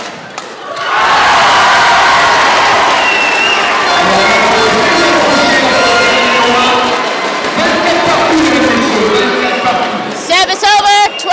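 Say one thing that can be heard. A crowd cheers and applauds loudly in a large hall.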